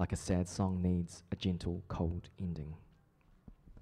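A young man reads aloud into a microphone.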